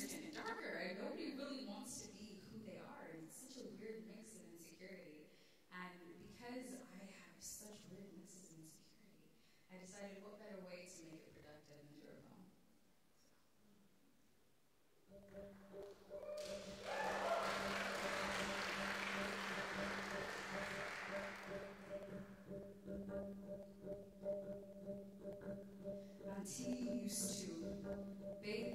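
A young woman sings softly into a microphone.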